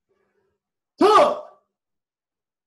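A man shouts sharply.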